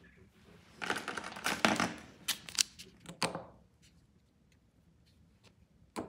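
A small glass bottle is lifted and set down on a table with a light clink.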